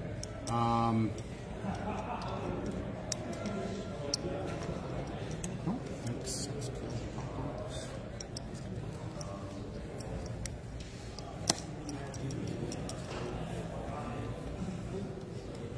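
Game pieces click on a table.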